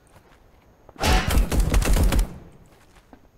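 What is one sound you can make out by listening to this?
Gunfire bursts rapidly.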